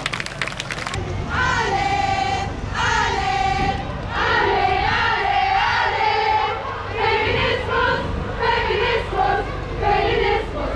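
A crowd of protesters chants loudly in unison outdoors.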